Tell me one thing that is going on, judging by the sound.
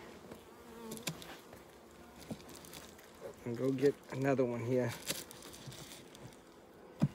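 A wooden frame knocks and scrapes against a hive box.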